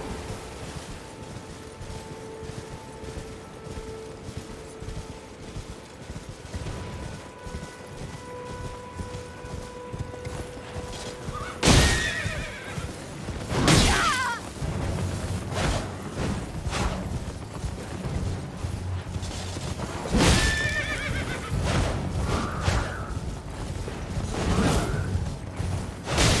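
Hooves thud as a horse gallops over grass.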